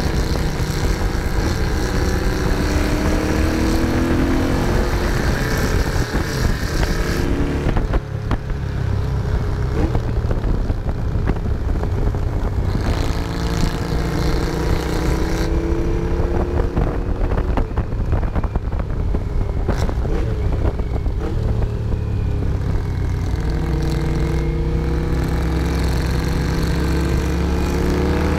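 A motorcycle engine roars close by, its pitch rising and falling as it speeds up and slows down.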